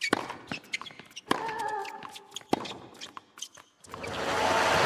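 A tennis ball is struck sharply by a racket several times.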